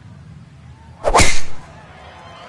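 A golf club strikes a ball with a sharp whack.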